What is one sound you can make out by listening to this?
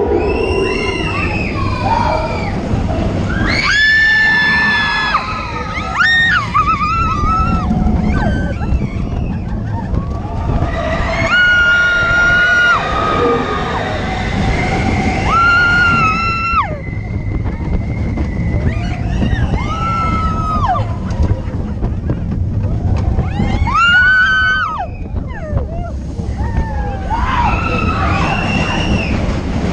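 Riders scream loudly, again and again.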